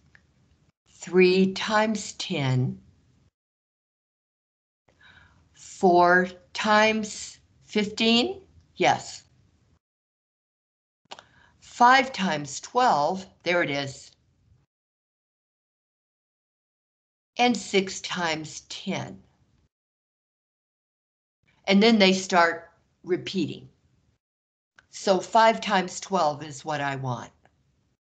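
A man explains calmly through a microphone, in short phrases with pauses.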